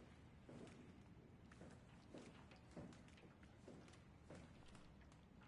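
Footsteps fall slowly and softly on a metal floor.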